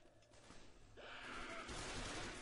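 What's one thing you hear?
An explosion roars and rumbles.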